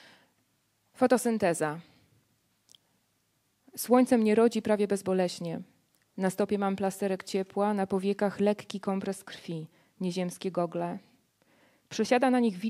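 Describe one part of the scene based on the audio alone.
A woman speaks calmly into a microphone, amplified in a hall.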